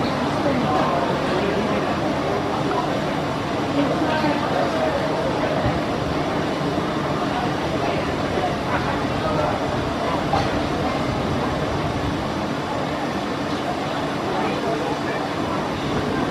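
A crowd murmurs and chatters in the distance.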